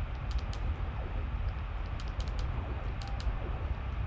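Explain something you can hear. Short laser blasts fire in a video game.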